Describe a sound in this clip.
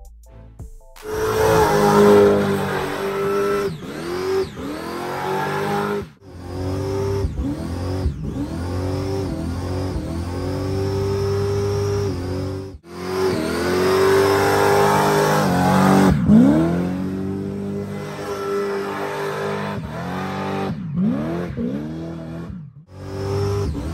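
A car engine roars and revs hard at high speed.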